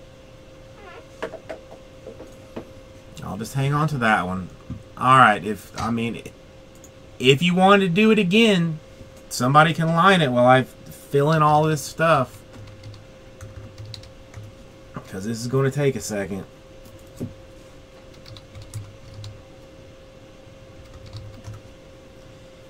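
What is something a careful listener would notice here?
Keys clack softly on a computer keyboard.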